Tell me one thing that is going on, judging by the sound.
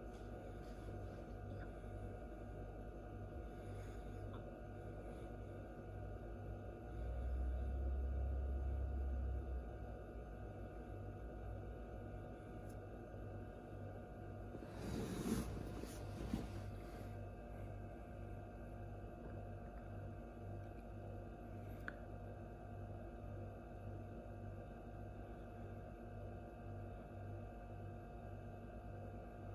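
An incubator hums steadily.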